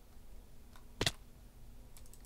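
A game character hits the ground with a sharp thud.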